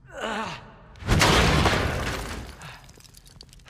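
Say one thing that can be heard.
A large metal gear crashes down with a loud thud.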